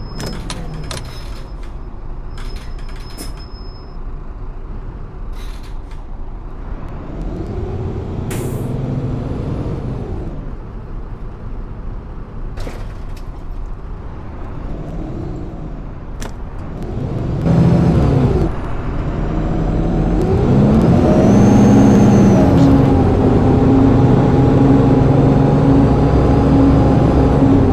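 A bus engine hums and rises in pitch as the bus speeds up.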